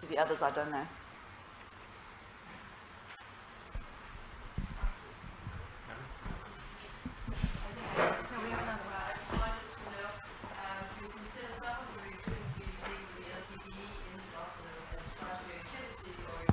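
A young woman speaks calmly in a room.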